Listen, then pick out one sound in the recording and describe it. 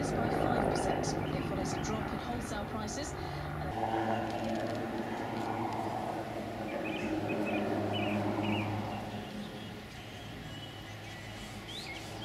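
A helicopter's rotor thumps steadily overhead.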